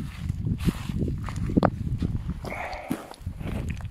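A gloved hand scrapes and rustles through dry soil and grass.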